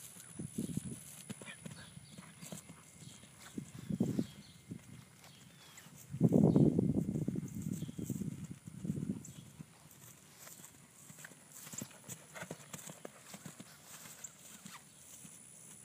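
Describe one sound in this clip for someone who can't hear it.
A horse's hooves thud on grass at a canter.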